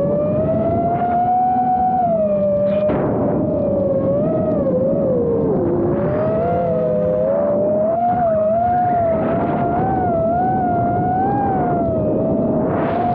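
A small model airplane's electric motor whines steadily, its pitch wavering up and down.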